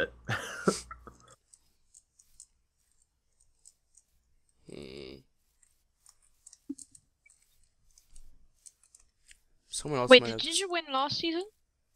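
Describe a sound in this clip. Footsteps crunch softly through grass.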